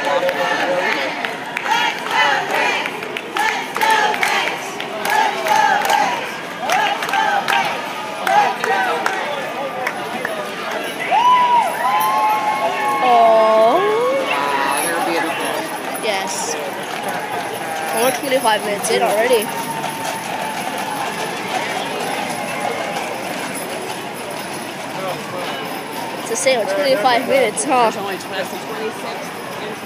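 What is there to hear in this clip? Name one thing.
A crowd of people chatter and call out nearby outdoors.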